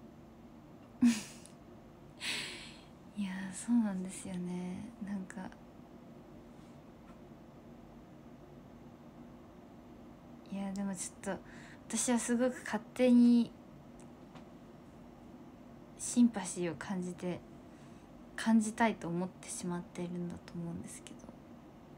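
A young woman speaks softly and casually into a close microphone, in short bursts with pauses.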